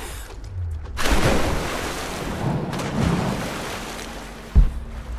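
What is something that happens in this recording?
Water splashes loudly as a body plunges in.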